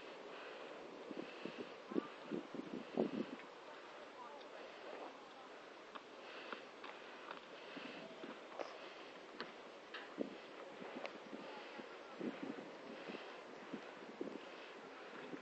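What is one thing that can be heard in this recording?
Hooves thud on soft ground as a horse trots nearby.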